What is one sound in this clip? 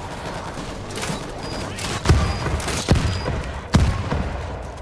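Gunshots ring out in loud single bangs.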